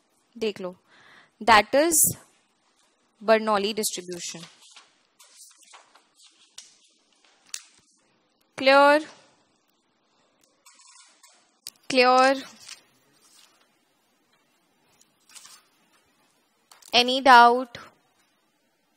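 A young woman speaks calmly into a headset microphone, in short phrases with pauses.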